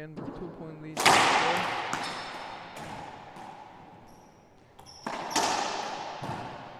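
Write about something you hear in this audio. A racquetball is struck hard and cracks off the walls of an echoing court.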